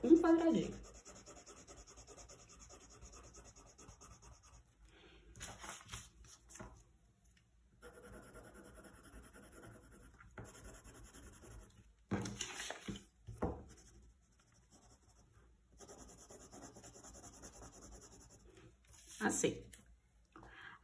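A coloured pencil scratches softly across paper.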